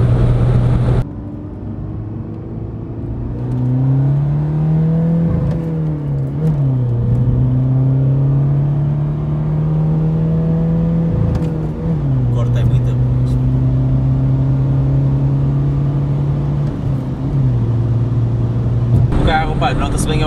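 A car engine revs hard, rising in pitch, then drops as gears shift.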